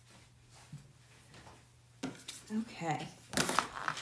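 A plastic board is set down on a cutting mat with a soft knock.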